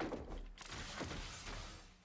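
A fiery explosion bursts.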